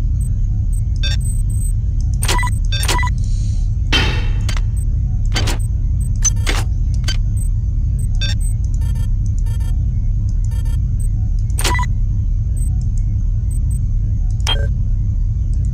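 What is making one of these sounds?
Short electronic clicks and blips sound now and then.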